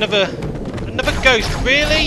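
A plasma gun fires a burst of shots.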